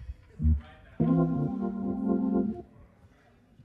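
An organ plays a loud, sustained chord that stops abruptly.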